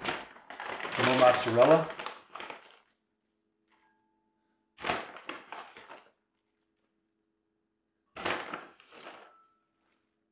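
Powder rustles as it is shaken from a bag.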